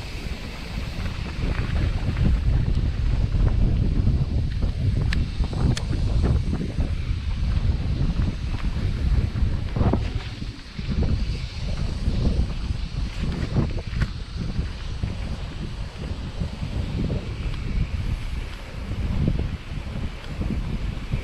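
Wind rumbles past close by.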